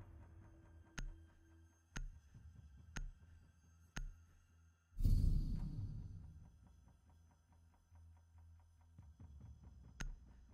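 A countdown timer ticks once a second.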